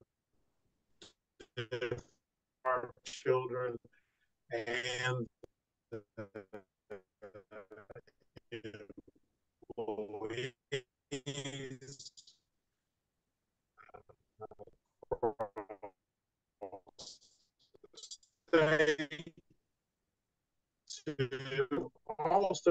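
A middle-aged man speaks calmly and with animation over an online call, with short pauses.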